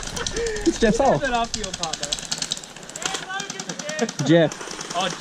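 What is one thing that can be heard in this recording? Paintball guns fire in rapid popping bursts.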